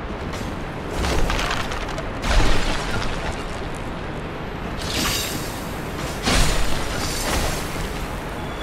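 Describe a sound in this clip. Wooden barrels smash and clatter.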